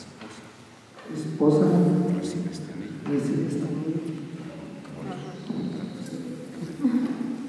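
A young man speaks calmly into a microphone, heard through loudspeakers in an echoing hall.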